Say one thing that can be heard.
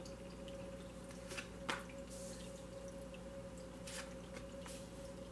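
Water trickles steadily in a small tabletop fountain.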